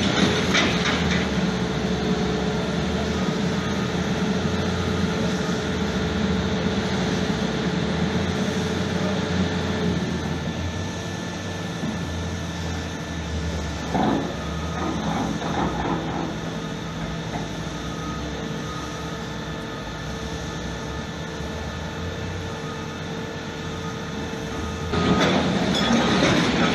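A stone-cutting machine drones steadily as its long blade grinds through rock.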